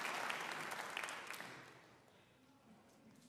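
An audience applauds in a large hall, then quickly fades.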